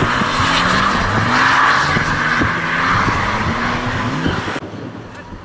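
A car engine revs hard and rises in pitch again and again.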